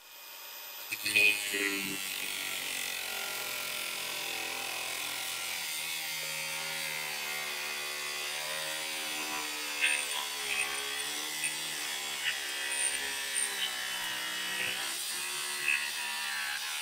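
Metal scrapes and screeches against the grinding disc.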